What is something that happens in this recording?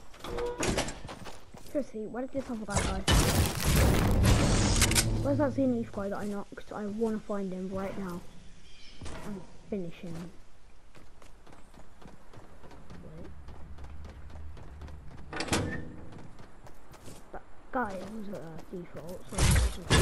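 Quick footsteps thud on hard floors.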